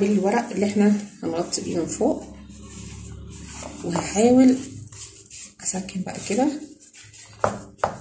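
Thin pastry sheets crinkle and rustle under pressing hands.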